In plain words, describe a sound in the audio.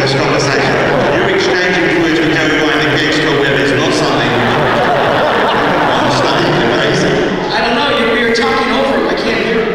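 A middle-aged man speaks through a microphone.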